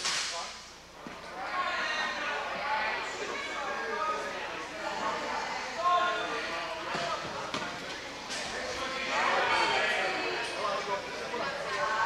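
Many people talk and call out at once in a large echoing hall.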